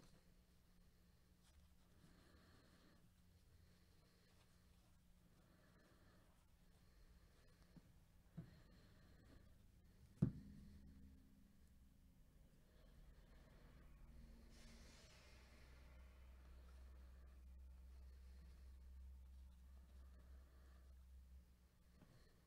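Trading cards rustle and slide as they are shuffled by hand.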